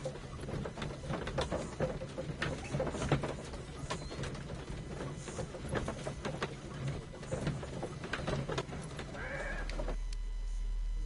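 A horse-drawn carriage rattles along.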